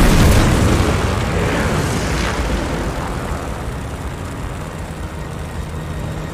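A plane's engine drones steadily and loudly, slowly easing off.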